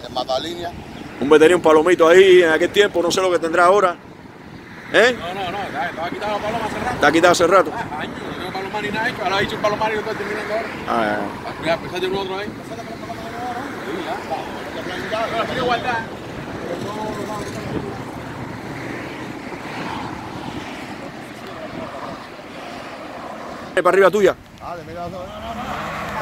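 Other men talk and laugh in the background.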